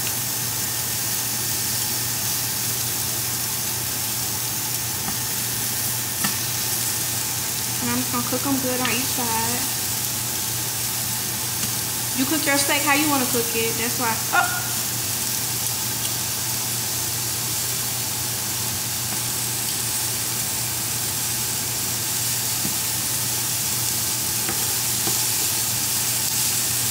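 Meat sizzles steadily in a hot frying pan.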